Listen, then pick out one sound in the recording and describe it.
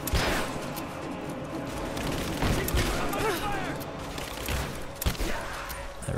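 A shotgun fires loud booming shots.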